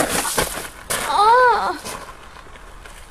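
A teenage boy cries out.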